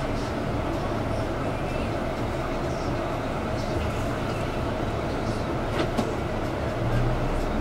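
Tyres roll on the road beneath a bus.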